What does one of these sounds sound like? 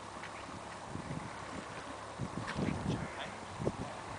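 A horse's hooves thud on soft ground as it canters closer.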